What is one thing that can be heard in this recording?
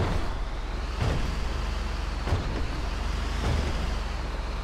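A truck's body thuds as it jolts over rough ground.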